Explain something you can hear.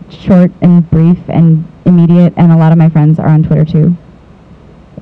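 A young man speaks calmly into a microphone in a large room.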